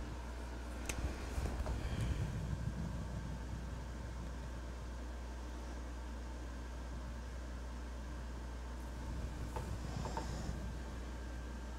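A sheet of paper rustles as it slides on a table.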